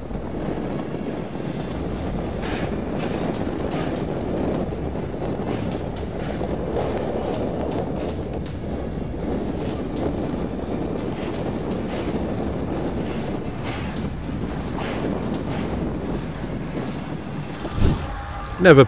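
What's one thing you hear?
Waves wash and splash against the pillars of a bridge.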